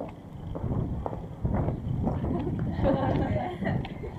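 Women talk quietly nearby.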